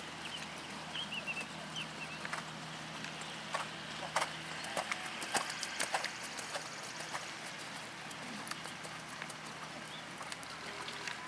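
A horse's hooves thud softly on sand at a trot.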